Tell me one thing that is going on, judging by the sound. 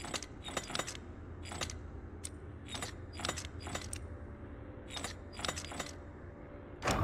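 A combination dial clicks as it turns.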